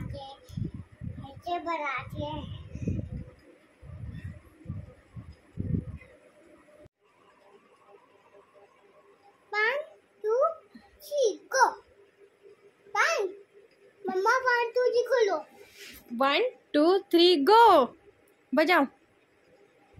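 A small boy talks and babbles close by.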